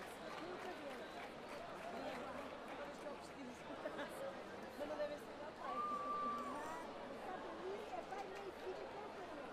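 A samba band beats drums loudly.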